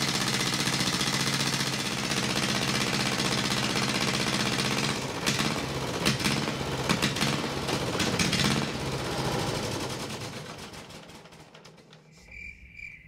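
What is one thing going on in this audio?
A large diesel engine runs with a loud, steady rumble and then winds down and stops.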